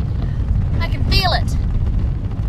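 A young woman speaks up close with urgency.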